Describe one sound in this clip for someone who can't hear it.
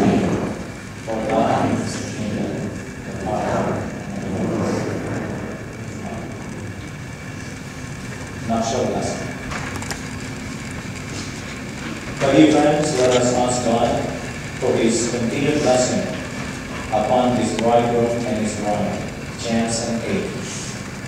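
A man speaks slowly and calmly nearby.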